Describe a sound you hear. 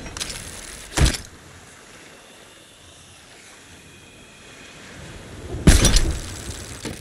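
A cannon fires with loud booms.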